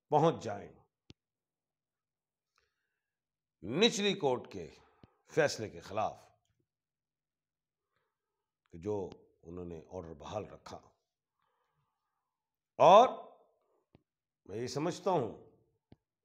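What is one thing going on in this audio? An elderly man speaks calmly and with pauses, close by.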